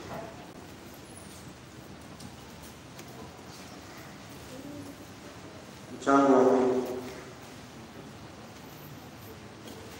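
A large crowd murmurs quietly in a big echoing hall.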